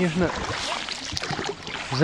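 A paddle splashes in calm water.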